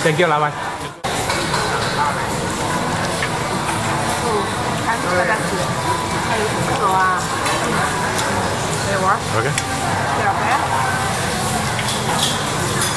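Many voices murmur in the background.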